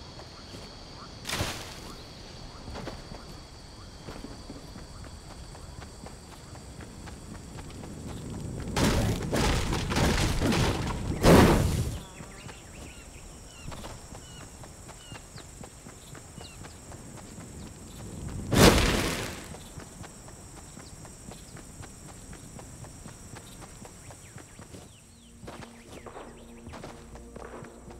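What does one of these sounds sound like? Footsteps run steadily over soft ground.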